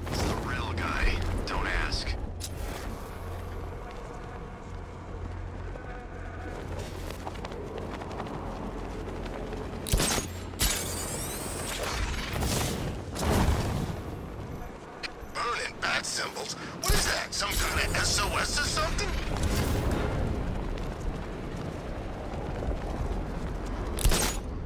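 Wind rushes past steadily, with sudden loud whooshes.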